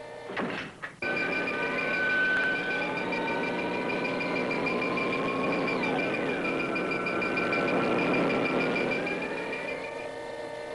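An electronic beam crackles and hums steadily.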